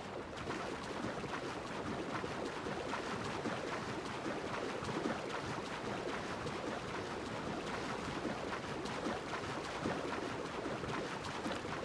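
Waves wash steadily around a swimmer.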